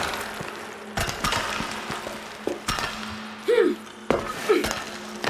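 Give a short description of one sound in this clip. Climbing axes strike into a rock wall with sharp knocks.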